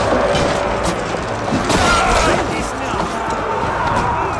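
Swords clash and clang in a close fight.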